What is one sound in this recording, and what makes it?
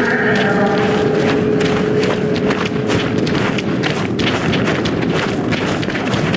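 Footsteps crunch on snowy ground.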